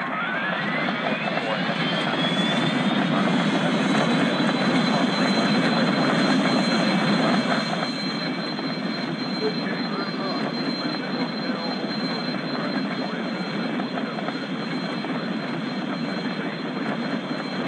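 An airliner's engines roar as it accelerates down a runway.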